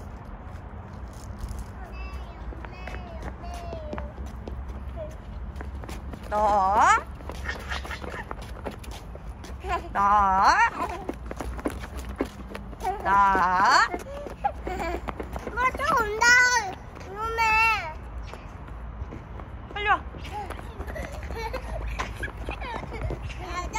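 Small footsteps patter on paving stones.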